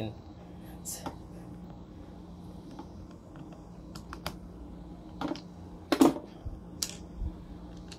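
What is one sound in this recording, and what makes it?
Plastic parts click and knock as they are handled and fitted together.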